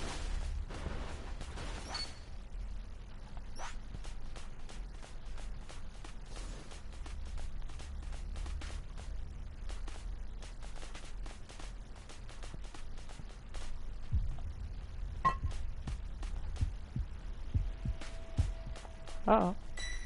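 Footsteps patter quickly on dry dirt.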